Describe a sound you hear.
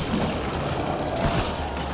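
An explosion bursts with a roar of flames.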